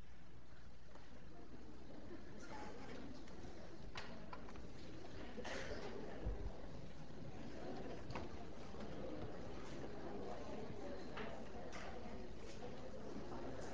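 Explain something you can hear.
An audience murmurs quietly in a large room.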